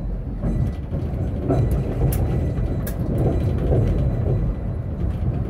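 A tram rumbles along the rails with a steady low roar.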